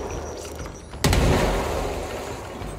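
An explosion booms and debris crashes.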